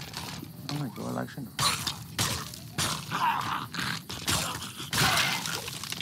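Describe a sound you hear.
A sword swishes and strikes against bones.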